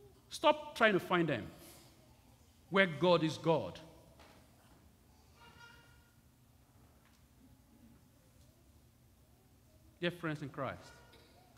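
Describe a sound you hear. A man chants short phrases through a microphone in an echoing hall.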